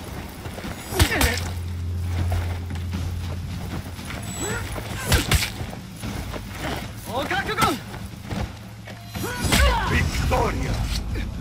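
Steel blades clash and ring out.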